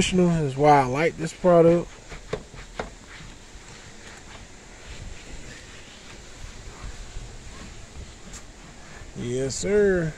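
A cloth rubs and wipes across a plastic panel.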